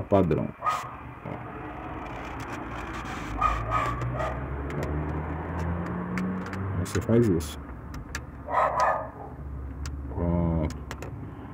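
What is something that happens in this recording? A screwdriver taps and scrapes against plastic parts.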